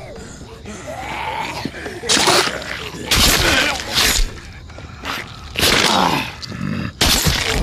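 Zombies snarl and shriek in loud bursts.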